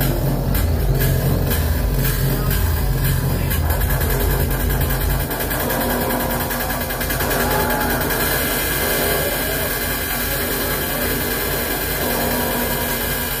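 Loud electronic music with a deep, throbbing bass plays.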